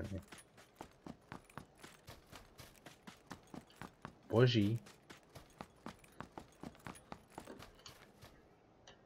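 Footsteps run quickly over dry ground.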